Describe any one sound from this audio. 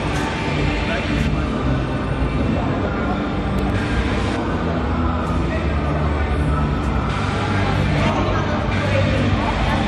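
Young people chatter in a crowd in a large echoing hall.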